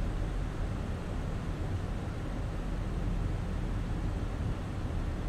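A jet airliner's engines drone steadily, heard from inside the cockpit.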